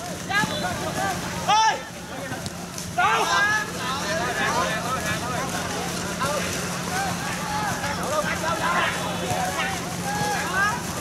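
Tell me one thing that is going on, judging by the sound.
Young men shout and call out to each other on an outdoor pitch.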